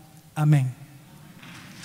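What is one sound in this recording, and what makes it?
An elderly man speaks a brief word through a microphone in an echoing hall.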